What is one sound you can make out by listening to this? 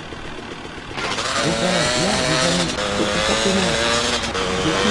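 A motorbike engine runs and revs as the bike rides off.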